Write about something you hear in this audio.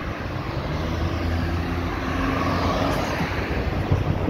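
A car passes close by with a rush of tyres and engine.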